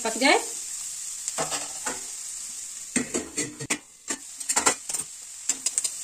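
A metal lid clanks onto a wok.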